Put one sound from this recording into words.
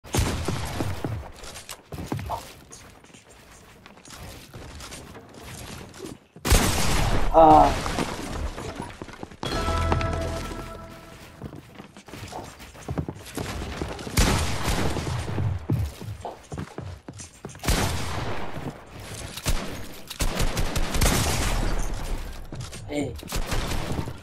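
Gunshots crack in quick bursts.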